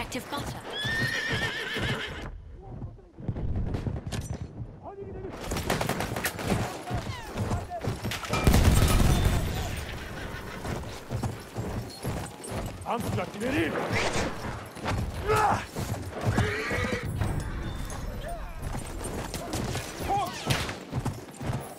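Hooves pound as a horse gallops over sand.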